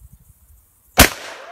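A shotgun fires a single shot outdoors.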